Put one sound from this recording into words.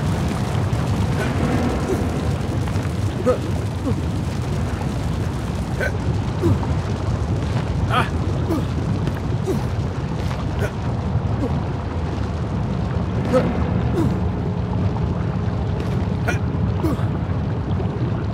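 Lava bubbles and rumbles low and steadily.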